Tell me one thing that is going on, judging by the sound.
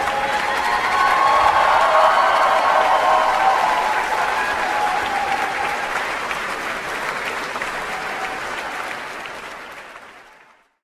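A large crowd applauds and cheers loudly in a big hall, then fades out.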